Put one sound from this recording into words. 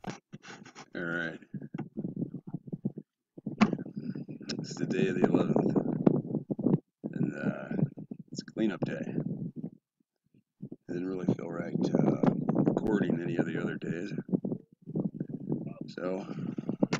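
A middle-aged man talks calmly into a nearby microphone.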